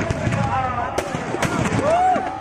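Sharp loud bangs go off.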